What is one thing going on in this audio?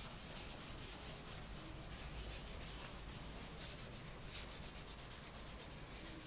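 A duster rubs back and forth across a chalkboard in quick, scratchy strokes.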